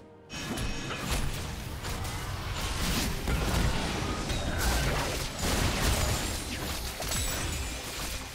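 Magic blasts and clashing hits burst rapidly in a busy fight.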